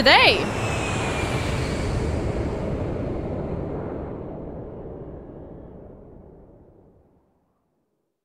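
A jet airliner's engines roar and slowly fade into the distance.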